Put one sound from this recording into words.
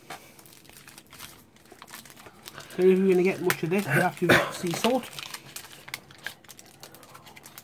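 Paper and foil crinkle as a wrapper is peeled open.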